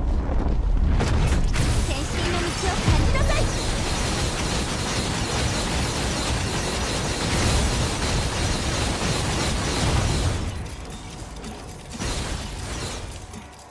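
Rapid slashing hits and blasts crackle in a fast game battle.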